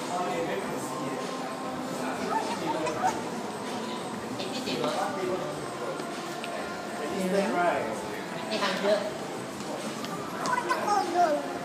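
A toddler's small feet patter on a hard floor.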